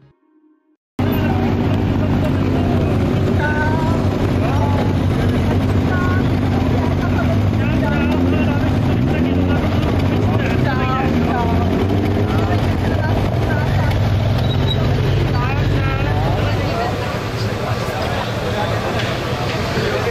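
Motorcycle engines idle with a steady low rumble.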